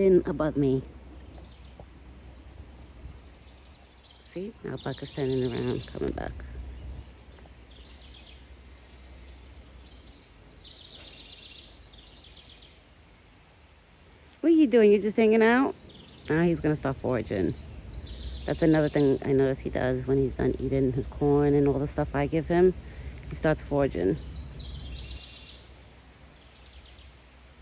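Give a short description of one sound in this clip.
A deer's hooves rustle through grass and leaves.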